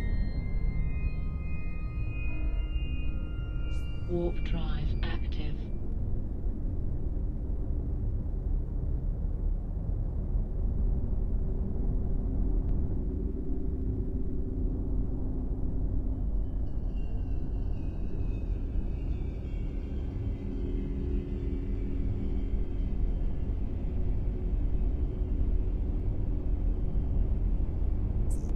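A spaceship's engine hums with a deep, steady rumble.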